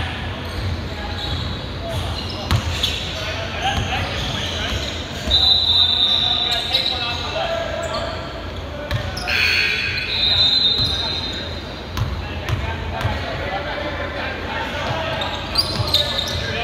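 Men call out to each other across the court.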